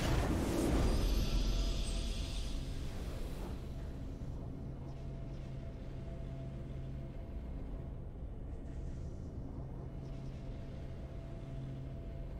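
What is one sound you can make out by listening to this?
A steady, low musical fanfare plays after the battle.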